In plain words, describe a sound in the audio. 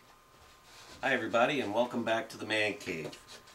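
A middle-aged man speaks close by, calmly.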